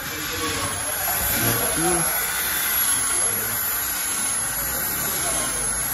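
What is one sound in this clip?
An electric drill whirs against metal.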